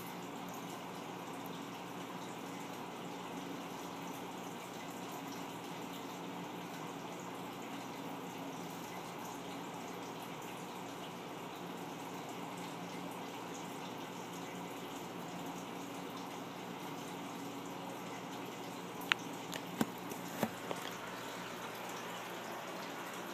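A burner hums and roars softly and steadily.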